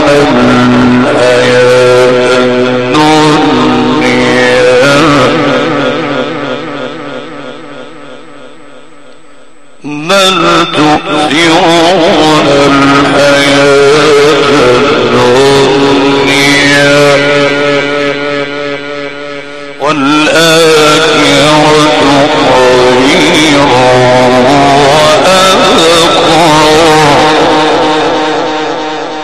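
A man chants in long, drawn-out, wavering notes through a microphone and loudspeakers.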